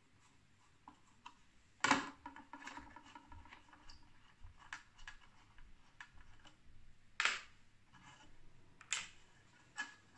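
A screwdriver scrapes and clicks against metal screws.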